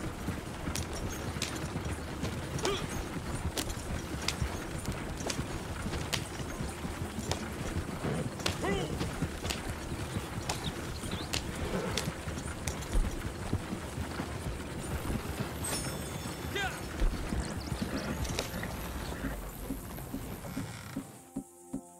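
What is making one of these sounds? Wooden wagon wheels rattle and creak over a dirt track.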